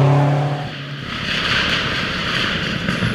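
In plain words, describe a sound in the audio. A second car approaches on the road with a rising rush of engine and tyre noise.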